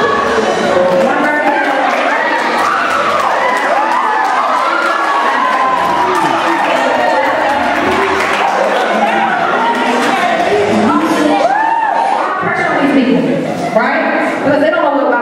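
A young man sings into a microphone through loudspeakers in a large echoing hall.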